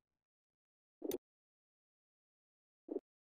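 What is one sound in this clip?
A game menu button clicks twice.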